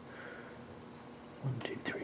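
Cardboard game pieces tap softly on a board.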